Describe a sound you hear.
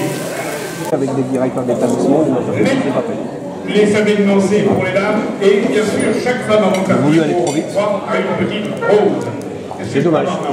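An elderly man speaks through a microphone over loudspeakers in a large echoing hall.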